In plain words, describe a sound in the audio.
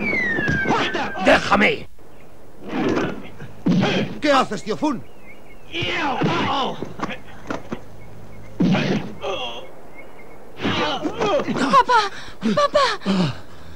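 Blows land with sharp thuds.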